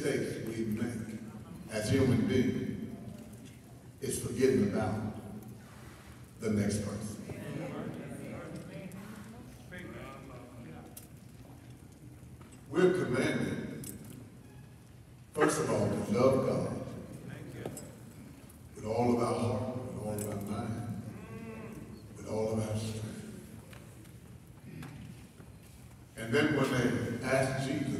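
A man preaches with passion into a microphone, his voice echoing through a large hall.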